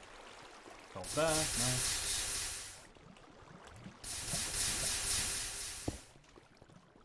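Water gushes and splashes loudly in short bursts.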